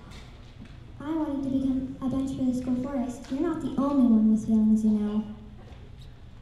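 Children sing a slow, drawn-out tune in a large hall.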